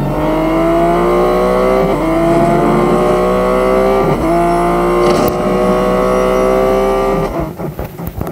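A race car engine roars at high speed, its pitch rising through the gears.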